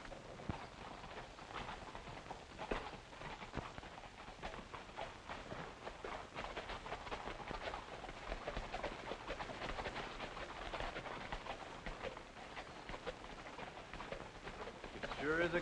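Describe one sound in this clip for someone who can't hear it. Horses' hooves clop steadily on a dirt road.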